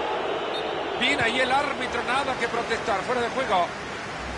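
A stadium crowd whistles shrilly.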